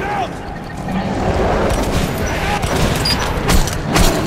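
Monstrous creatures snarl and growl close by.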